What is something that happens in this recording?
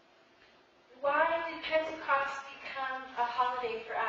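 A woman speaks calmly through a microphone in an echoing hall.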